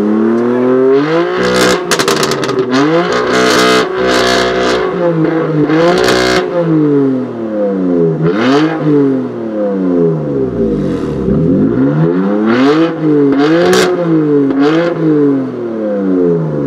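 A straight-piped sports car with a twin-turbo inline-six revs hard while parked.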